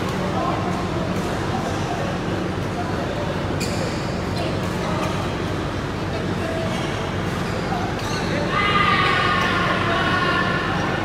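Several people talk at a distance in a large echoing hall.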